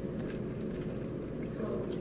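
Water pours over ice in a plastic cup.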